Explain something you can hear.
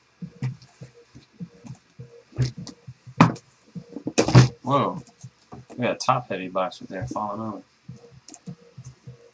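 Cardboard boxes scrape and tap as they are handled.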